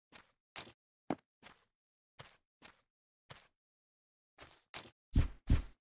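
Blocks are placed with short, soft clicks.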